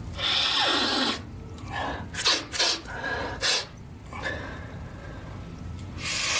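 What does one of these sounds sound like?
A man breathes heavily and gasps close by.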